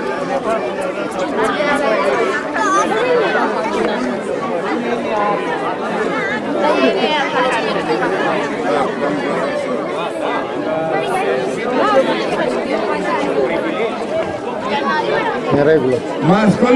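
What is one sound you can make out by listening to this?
A crowd of adults and children chatter all around outdoors.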